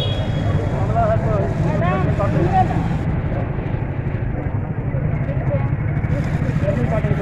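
A vehicle engine idles with a low rumble.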